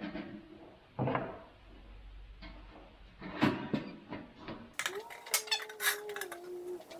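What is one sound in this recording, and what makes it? Metal tools knock and clatter against a wooden workbench.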